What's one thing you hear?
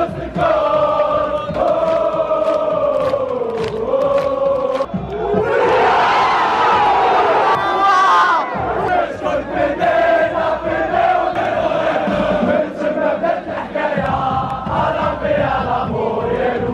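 A large crowd of fans chants and sings together loudly outdoors.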